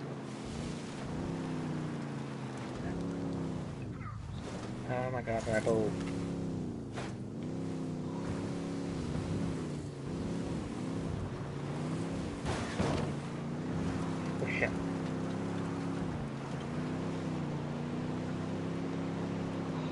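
A truck engine revs and drones, rising and falling in pitch.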